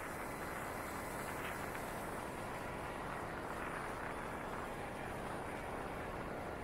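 A motorcycle engine hums.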